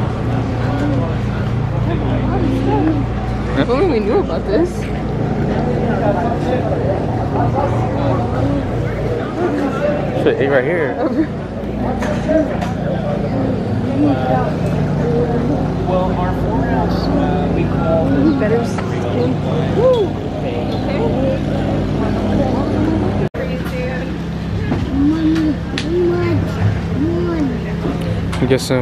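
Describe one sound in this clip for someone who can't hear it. Many adult men and women chatter and talk around outdoors.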